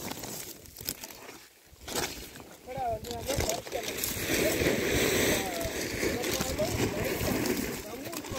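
Pieces of charcoal clatter and rustle under a hand.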